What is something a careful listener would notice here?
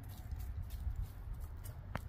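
A dog's paws rustle through dry grass.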